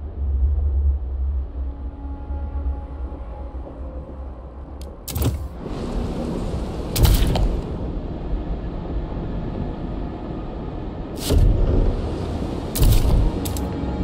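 Wind howls steadily with a low rumble.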